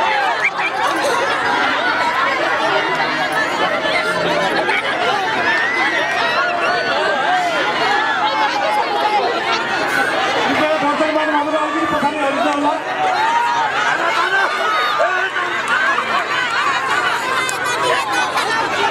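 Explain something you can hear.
A large outdoor crowd cheers and shouts loudly throughout.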